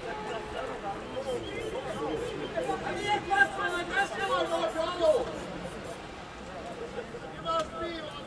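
Men call out and talk across an open field, some distance away.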